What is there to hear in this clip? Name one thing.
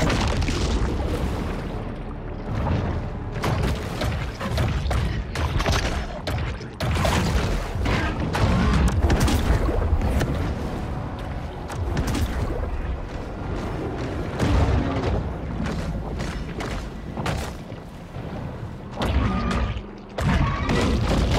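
Water splashes and churns as a large fish thrashes.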